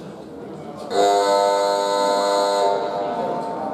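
A loud buzzer sounds steadily for a moment and stops.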